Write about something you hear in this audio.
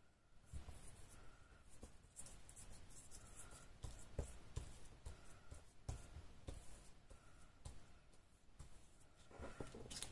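A brush dabs and brushes on paper.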